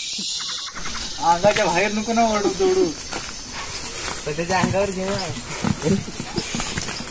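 Young men talk loudly nearby.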